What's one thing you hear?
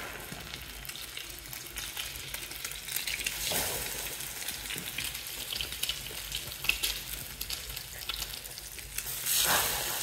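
Batter sizzles and crackles in a hot frying pan.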